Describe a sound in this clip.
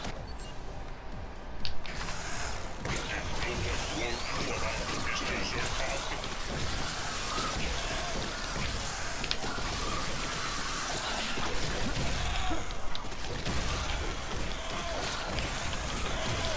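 Guns fire bursts of laser shots.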